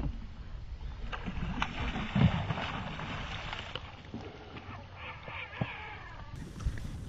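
A hooked fish splashes at the surface of the water.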